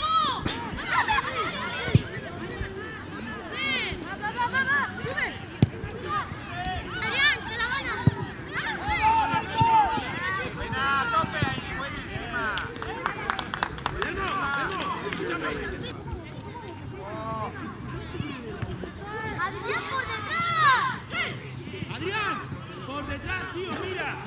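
Children shout to each other across an outdoor pitch.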